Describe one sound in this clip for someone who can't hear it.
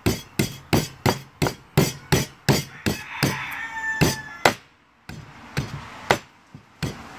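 A blade knocks and chops into wood in a quick, steady rhythm.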